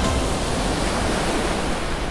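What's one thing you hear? Foaming water rushes and churns loudly.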